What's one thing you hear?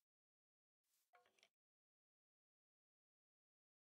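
A pickaxe knocks against a wooden block.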